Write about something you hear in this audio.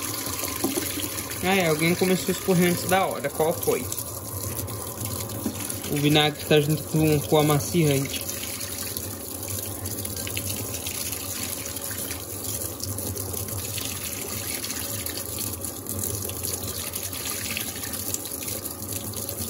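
Water pours steadily into a washing machine drum.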